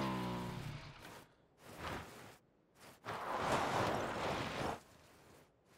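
A motorbike engine revs as the bike rides over rough ground.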